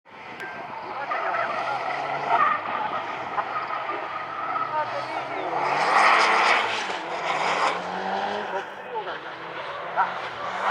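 A race car engine revs hard and rises and falls as the car slides around tight turns.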